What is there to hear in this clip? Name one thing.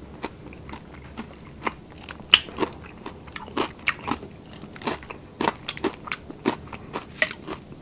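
Crispy fried meat crackles as a man's hands tear it.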